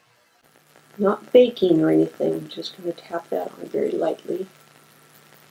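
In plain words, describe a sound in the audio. A middle-aged woman talks calmly and close to a microphone.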